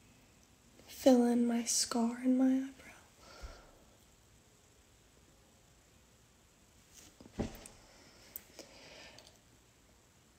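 A young woman speaks briefly and casually, close to the microphone.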